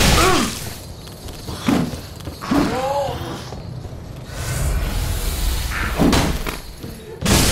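Metal weapons clash and strike armour with heavy blows.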